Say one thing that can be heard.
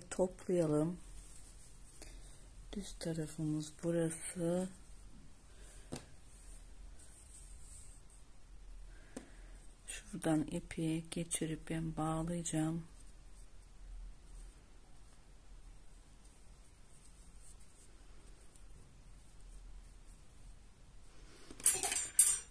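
Twine rustles softly as it is handled and pulled through a mesh.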